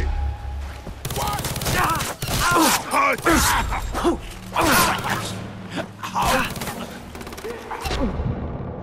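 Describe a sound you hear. A pistol fires loud gunshots.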